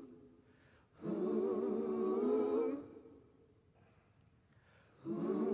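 A choir sings together in long held phrases, echoing in a large hall.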